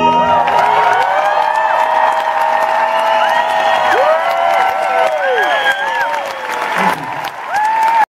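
A man sings into a microphone through loudspeakers, holding long notes.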